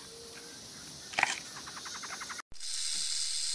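A panda crunches on bamboo.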